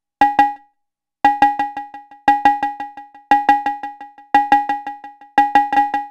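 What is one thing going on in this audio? A synthesizer plays a quick rhythmic pattern of short bell-like pings, each one echoing and fading.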